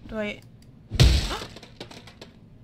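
A wooden door smashes apart with a loud crash.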